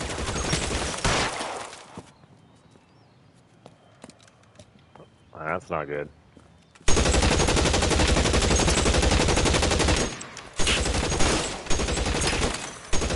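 A machine gun fires rapid, loud bursts of shots.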